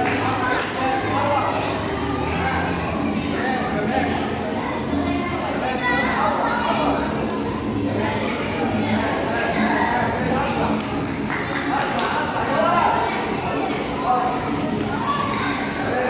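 A crowd of young children chatters and shouts.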